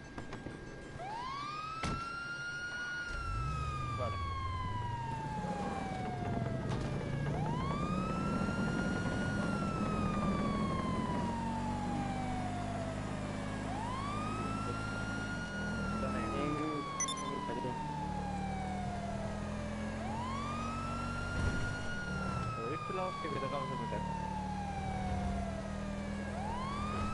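A police siren wails in long rising and falling cycles.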